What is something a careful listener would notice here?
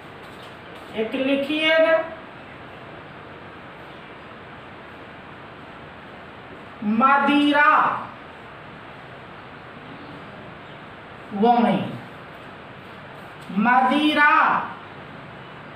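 A middle-aged man speaks in short, calm phrases nearby.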